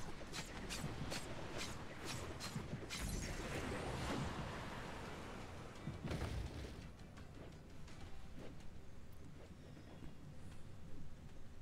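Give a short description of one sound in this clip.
Magic attacks boom and whoosh in a video game battle.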